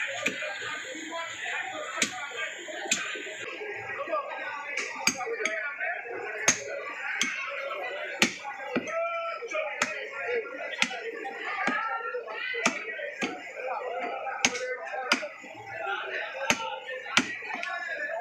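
A heavy blade chops sharply into bone and meat on a wooden block.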